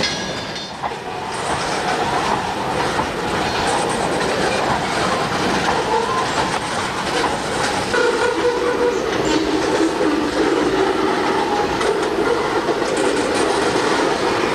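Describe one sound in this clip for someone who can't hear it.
A long freight train rumbles across a bridge in the distance.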